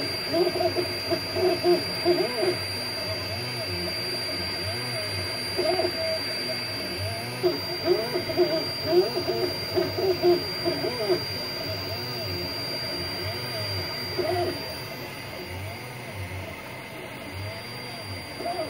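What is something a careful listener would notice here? A 3D printer's motors whir and whine in short bursts of shifting pitch.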